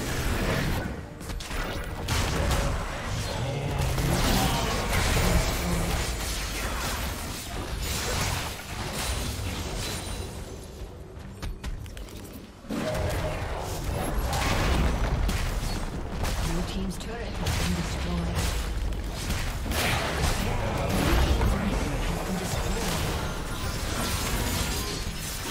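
Magic blasts crackle and boom during a fight.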